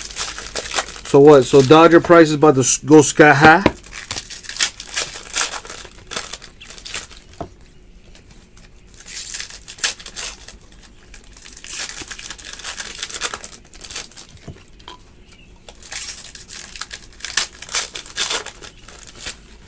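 Trading cards rustle and slide as they are flipped through by hand.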